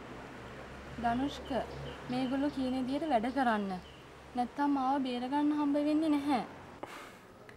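A young woman speaks into a phone with feeling.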